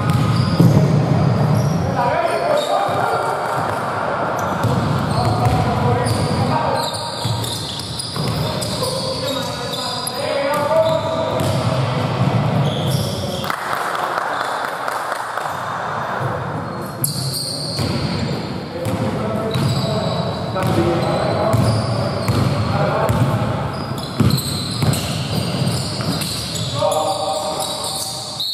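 Basketball shoes squeak sharply on a wooden floor in a large echoing hall.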